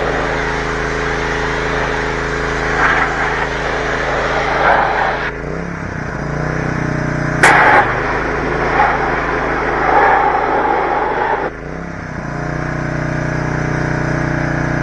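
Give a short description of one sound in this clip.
A pressure washer engine drones steadily.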